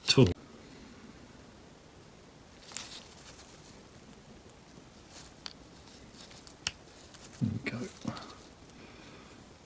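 A small plastic cap clicks and scrapes as hands pull it off a metal motor.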